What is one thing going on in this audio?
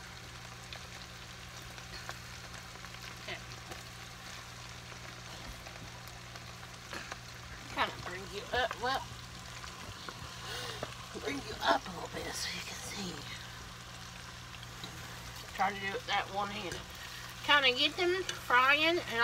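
Liquid bubbles and simmers in a pot.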